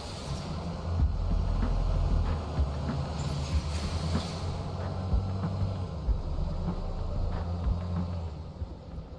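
A vehicle engine rumbles as it drives off.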